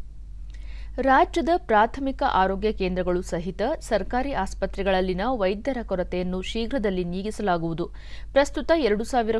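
A woman reads out news calmly into a microphone.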